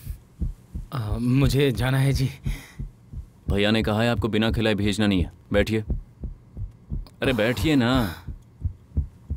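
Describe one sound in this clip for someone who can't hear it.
A young man shouts angrily.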